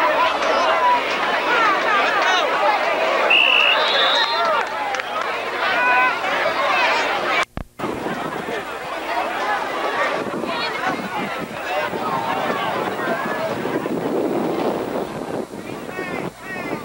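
A crowd of spectators chatters and calls out nearby.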